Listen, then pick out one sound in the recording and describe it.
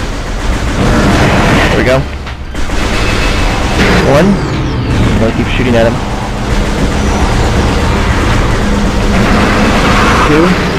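An arm cannon fires rapid energy blasts.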